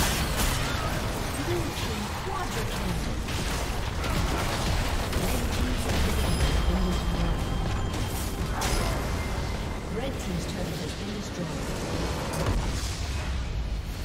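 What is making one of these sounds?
Game spell effects and attacks crackle and boom.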